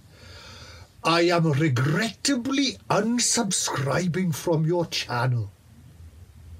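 A middle-aged man sings loudly and dramatically close by.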